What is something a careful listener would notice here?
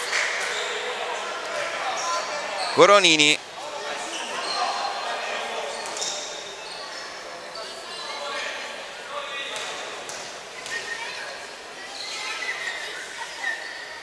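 Spectators chatter and call out in a large echoing hall.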